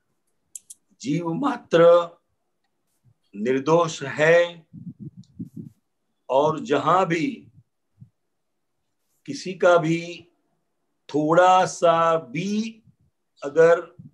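An older man speaks calmly in short phrases over an online call.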